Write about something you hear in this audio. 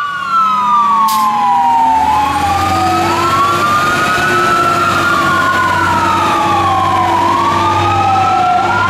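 A fire truck siren wails loudly up and down close by.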